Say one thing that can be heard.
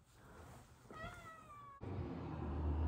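A cat meows.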